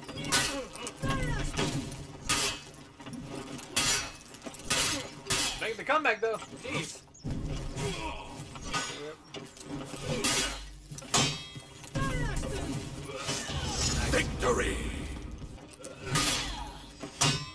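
Warriors grunt and shout with effort.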